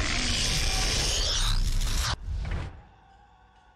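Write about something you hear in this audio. A loud magic blast roars and crackles.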